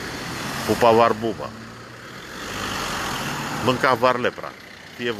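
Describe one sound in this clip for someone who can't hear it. A car drives by on a street nearby.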